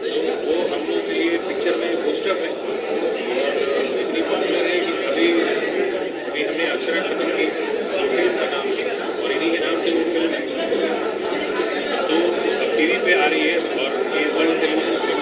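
A middle-aged man speaks with animation into close microphones.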